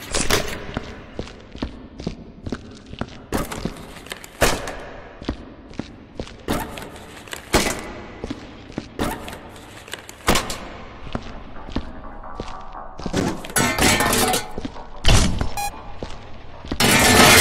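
Footsteps tap steadily on a hard tiled floor.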